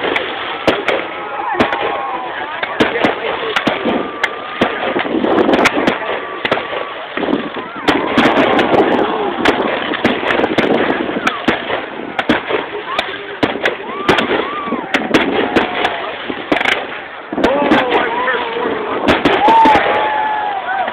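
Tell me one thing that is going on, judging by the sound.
Aerial firework shells burst with sharp bangs.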